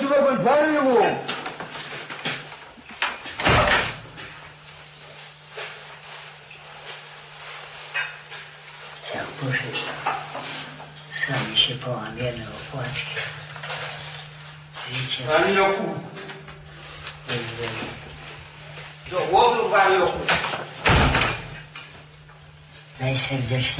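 An elderly man speaks quietly and hoarsely close by.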